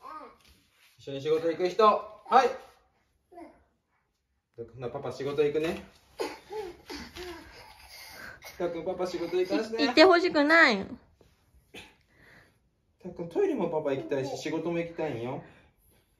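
A baby babbles and fusses close by.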